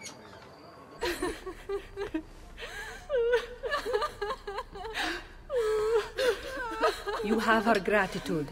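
A woman speaks warmly and calmly, close by.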